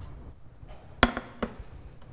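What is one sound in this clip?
A metal pan clinks on a stovetop.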